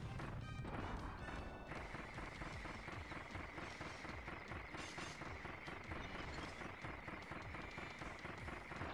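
Magic blasts crackle and chime in a video game.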